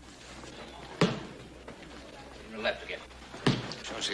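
Punches land with loud thuds.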